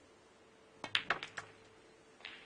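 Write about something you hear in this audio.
Snooker balls knock against each other with sharp clicks.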